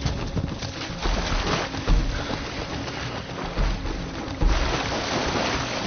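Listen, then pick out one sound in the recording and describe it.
Galloping horses splash through shallow water.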